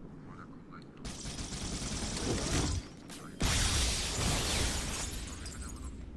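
Heavy gunfire roars in loud bursts.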